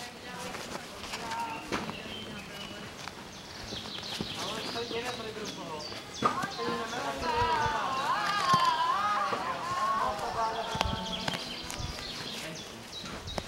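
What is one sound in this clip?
Birds chirp and warble in the trees nearby.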